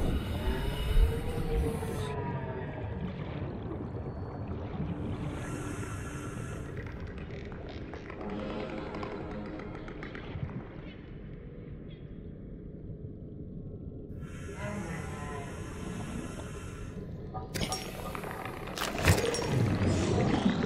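A small underwater vehicle hums steadily as it moves.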